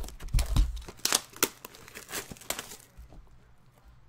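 Plastic wrap crinkles and rustles as it is torn off.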